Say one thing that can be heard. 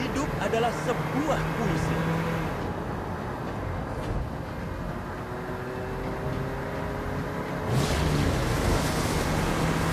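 A cartoonish engine hums and roars as a vehicle speeds along.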